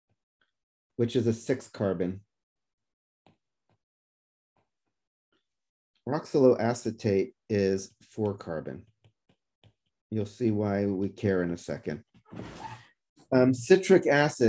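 A man speaks calmly and steadily into a close microphone, with pauses.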